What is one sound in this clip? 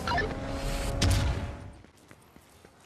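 A car engine roars as a car speeds along.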